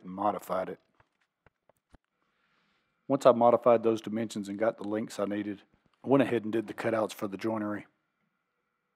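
A man speaks calmly, close to the microphone.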